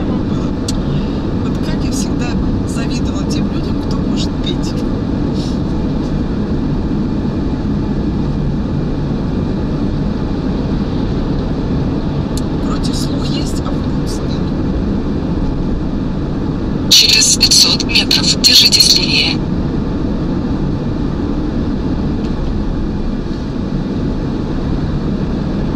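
A car engine hums steadily and tyres roll on a highway.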